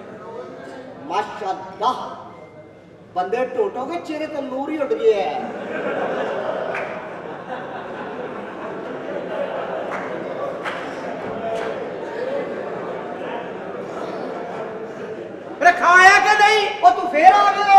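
A man speaks with animation on a stage through a microphone.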